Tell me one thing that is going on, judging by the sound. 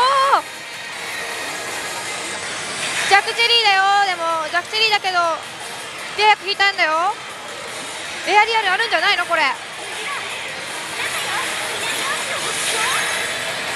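A slot machine plays bright electronic music and jingles.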